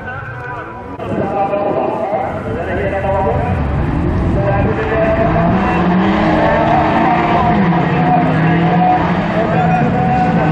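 A pack of racing car engines roars loudly together, revving up and down.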